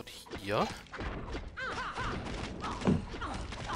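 Weapons clash and clatter in a battle.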